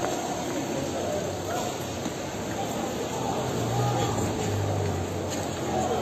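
A crowd of people chatters and calls out in a busy street outdoors.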